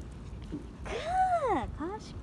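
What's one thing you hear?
A small dog whines in high, gliding yelps.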